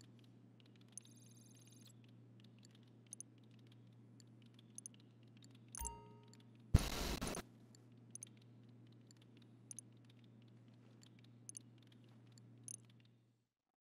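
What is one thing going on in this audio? Short electronic menu clicks sound as buttons are pressed.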